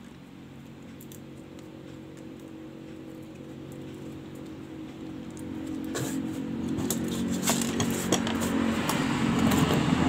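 Small parts click and tap softly as they are handled and set down on a table.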